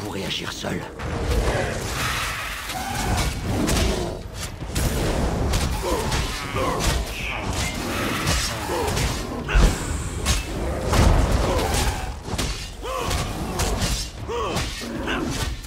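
Blades clash and strike in a fierce fight.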